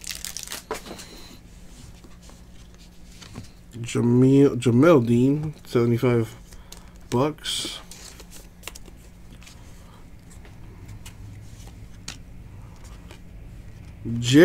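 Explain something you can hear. Trading cards rustle and click softly as hands shuffle through them.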